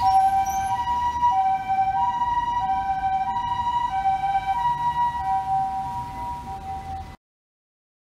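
An ambulance siren wails nearby in a steady two-tone pattern, then stops abruptly.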